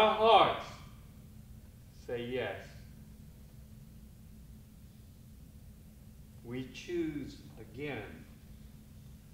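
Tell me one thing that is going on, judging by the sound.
An elderly man speaks slowly and dramatically, with long pauses.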